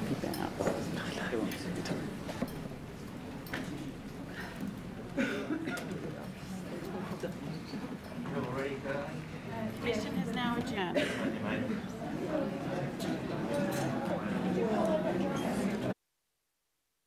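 Adult men and women murmur and talk quietly in a large room.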